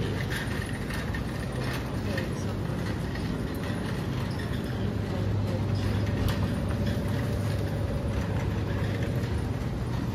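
A shopping cart rolls and rattles over a smooth floor.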